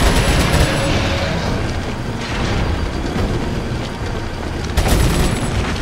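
A gun fires loud single shots.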